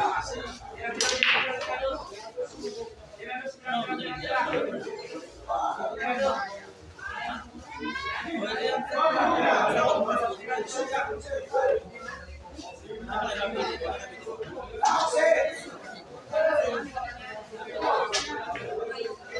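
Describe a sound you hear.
Pool balls click sharply against each other.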